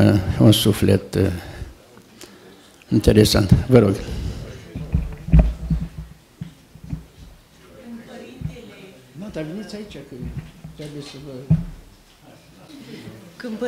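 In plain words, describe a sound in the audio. An elderly man speaks calmly into a microphone, his voice amplified in a room.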